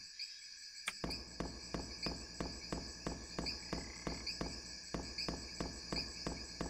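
Footsteps crunch steadily over forest ground.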